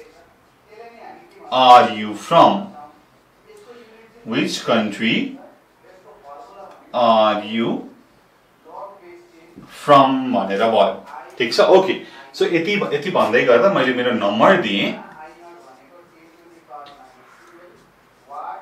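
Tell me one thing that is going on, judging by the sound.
A young man speaks calmly and clearly close by.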